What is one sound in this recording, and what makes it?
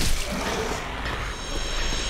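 A sword strikes a creature with a sharp hit.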